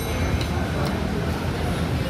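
A fork scrapes on a plate.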